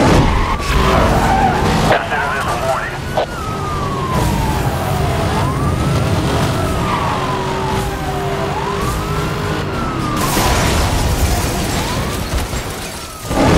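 A police siren wails up and down steadily.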